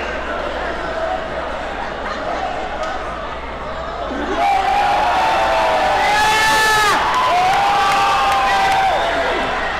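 A crowd murmurs and shouts in a large echoing arena.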